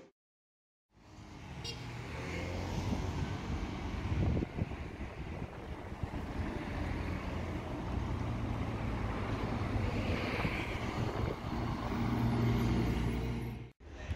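Wind rushes outdoors.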